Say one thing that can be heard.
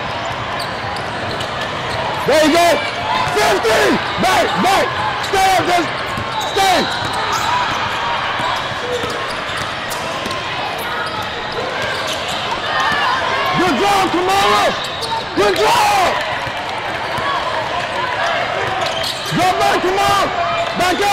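A basketball bounces on a hardwood floor in a large echoing hall.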